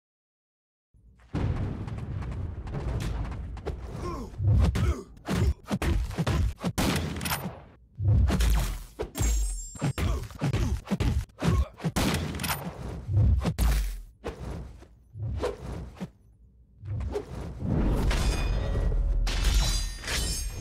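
Game fighters strike each other with heavy punches, slashes and blasts.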